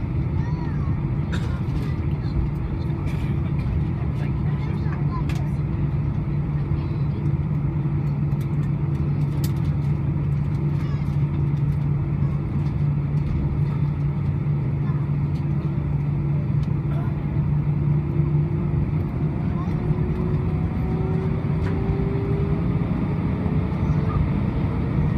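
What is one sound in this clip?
Jet engines roar with a steady low hum from inside an aircraft cabin.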